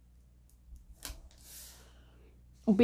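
A card slides briefly across a wooden tabletop.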